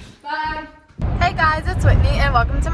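A young woman speaks with animation, close to the microphone.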